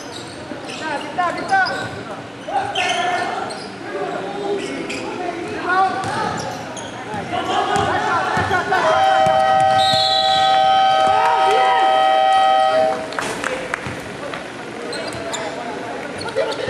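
Young players call out to each other across the hall.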